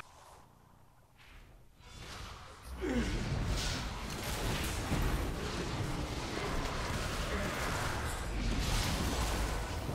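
Game sound effects whoosh and crackle.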